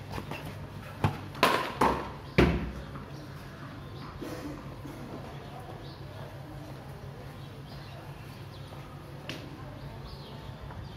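A wooden bat hits a ball with a sharp crack.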